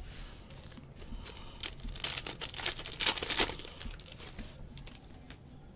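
Trading cards rustle and slide against each other as they are handled close by.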